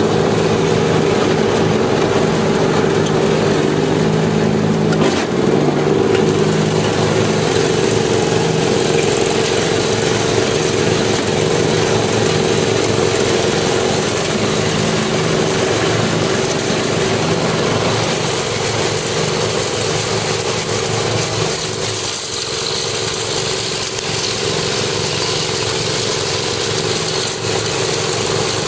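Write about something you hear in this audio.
A lawn tractor engine drones steadily up close.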